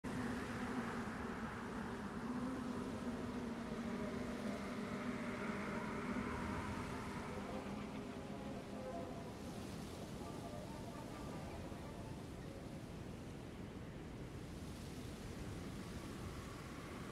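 Thunder rumbles low and steadily in a storm.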